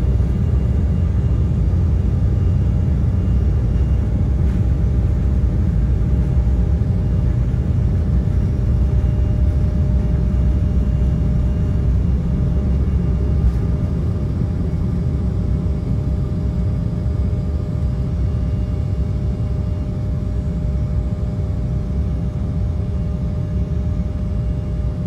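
Jet engines roar steadily with a droning whine.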